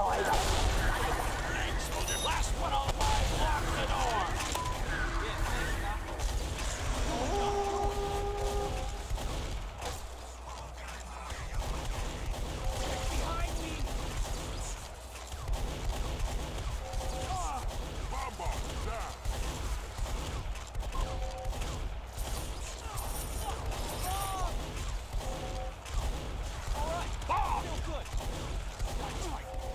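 Gunshots crack repeatedly in quick bursts.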